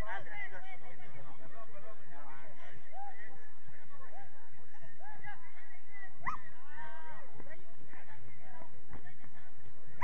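Young players shout and call to each other across an open field at a distance.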